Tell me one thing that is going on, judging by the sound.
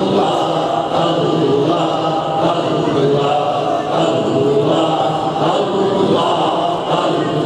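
A large group of men chants together in unison.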